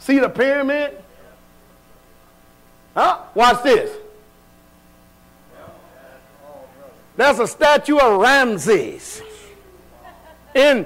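A man preaches loudly with animation in an echoing hall.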